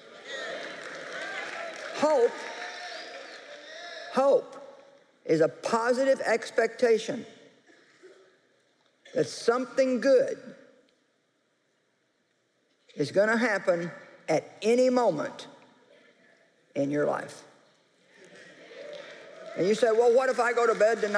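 A middle-aged woman speaks expressively through a microphone.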